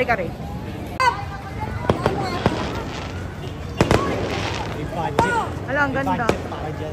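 Fireworks pop and crackle in the distance.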